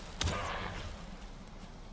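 A weapon strikes a creature with a sharp thwack.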